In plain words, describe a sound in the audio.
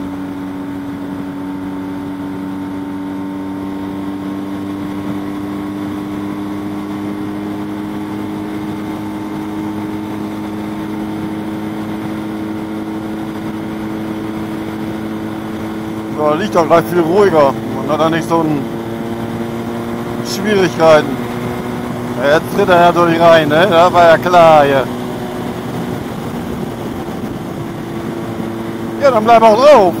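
A motorcycle engine drones steadily at high speed, its pitch slowly rising.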